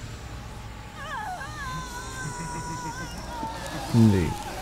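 A woman cries out in pain.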